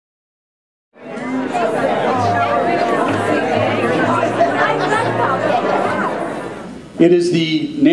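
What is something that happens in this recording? A crowd chatters and murmurs in a room.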